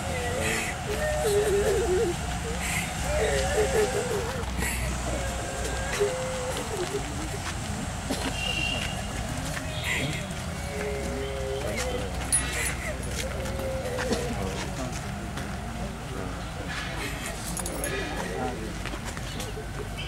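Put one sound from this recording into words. A woman wails and sobs nearby.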